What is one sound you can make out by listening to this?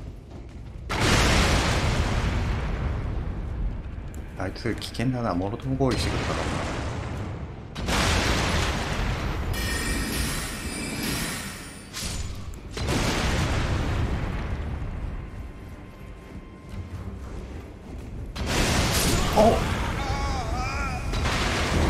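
Fiery explosions roar and rumble loudly.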